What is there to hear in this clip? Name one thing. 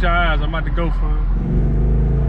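A young man talks loudly over the engine.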